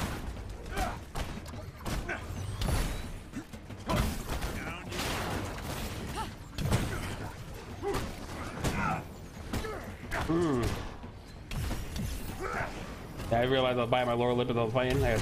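Blasts and impacts crash in quick bursts.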